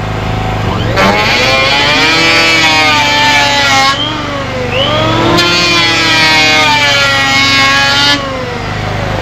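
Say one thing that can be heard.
An electric hand planer whines loudly as it shaves wood.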